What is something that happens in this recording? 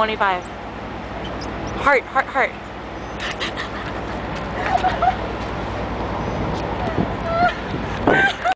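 A young woman speaks and laughs close by.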